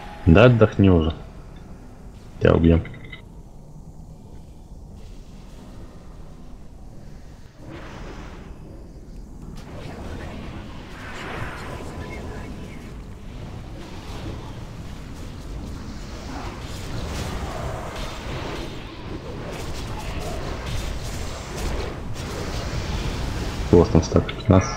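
Magic spells crackle and whoosh in a fight with a dragon.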